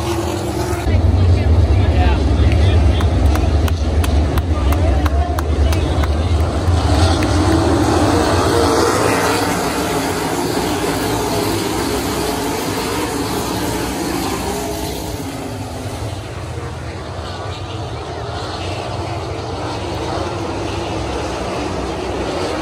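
A crowd cheers outdoors.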